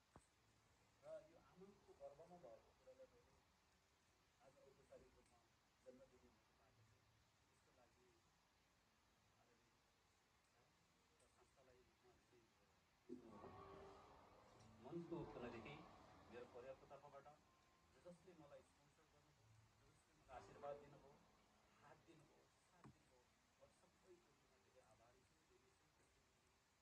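A man speaks calmly into a microphone, heard at a distance in a room with some echo.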